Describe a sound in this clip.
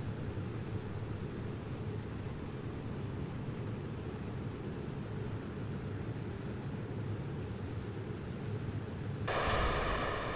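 Rocket engines roar with a deep, steady rumble.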